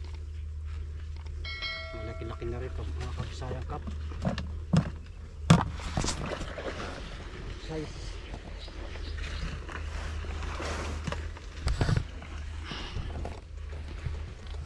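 Leaves and reeds rustle as a person wades through dense plants.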